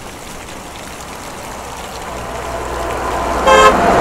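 A car approaches on the road.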